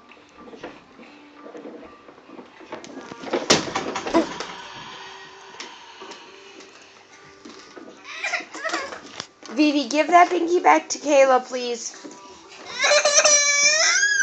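A plastic toy truck knocks and rattles.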